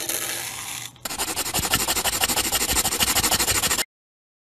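A crayon scribbles rapidly on paper.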